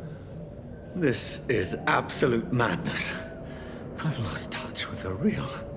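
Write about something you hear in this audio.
A man speaks close by in a shaken, troubled voice.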